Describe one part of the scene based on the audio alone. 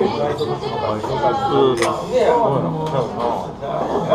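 Glasses clink together.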